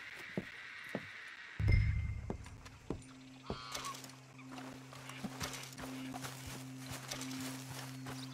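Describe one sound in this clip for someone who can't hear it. Footsteps thud on wooden boards and grass.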